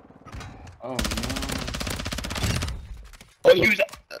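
A gun fires rapid bursts.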